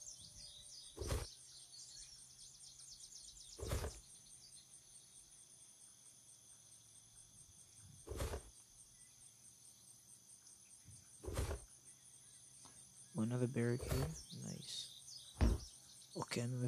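Short, dull thuds sound as items are picked up, now and then.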